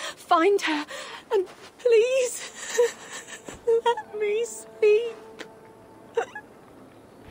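A young woman speaks pleadingly, close by.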